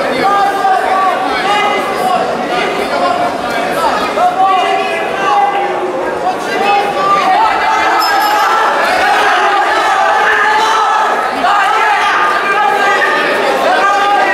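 A crowd of spectators shouts encouragement.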